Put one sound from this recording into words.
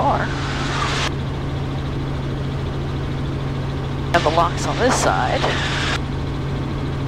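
A woman speaks briefly through a headset intercom.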